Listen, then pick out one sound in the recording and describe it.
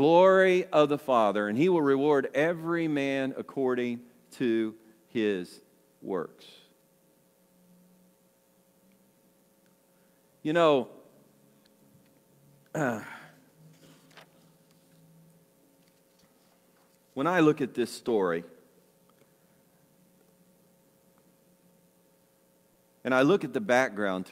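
An older man speaks calmly into a microphone, with long pauses.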